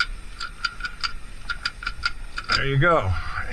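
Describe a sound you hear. A ratchet strap clicks as it is tightened.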